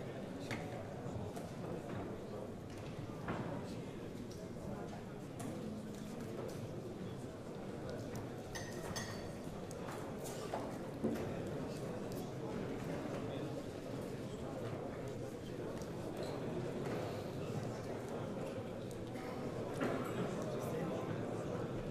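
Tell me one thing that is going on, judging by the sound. A crowd of men murmurs and chatters.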